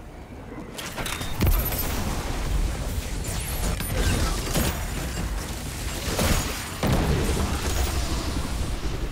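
Video game gunfire and blasts crack and boom loudly.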